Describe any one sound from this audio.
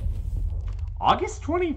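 A young man speaks briefly close to a microphone.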